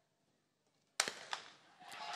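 A starting pistol fires with a sharp crack.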